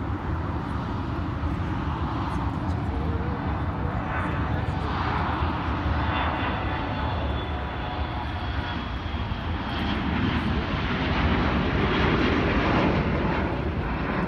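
A jet airliner's engines roar steadily as it taxis along a runway.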